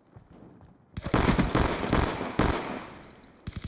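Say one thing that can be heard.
Pistol shots ring out in rapid bursts.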